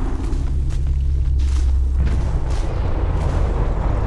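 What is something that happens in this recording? Dry corn stalks rustle as someone pushes through them.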